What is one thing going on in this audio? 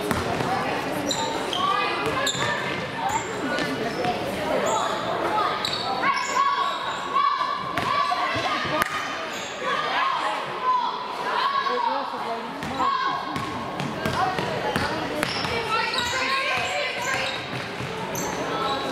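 Girls call out to each other across the court.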